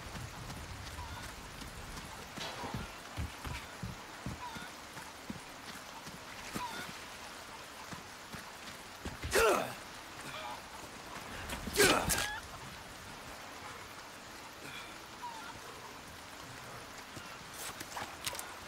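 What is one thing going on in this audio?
Footsteps crunch on dirt and debris.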